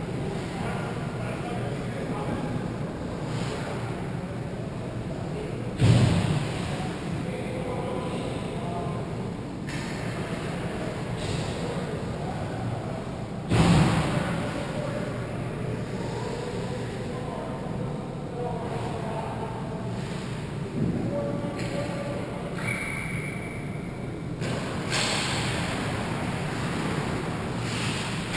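Skate blades scrape and hiss across ice in a large echoing rink.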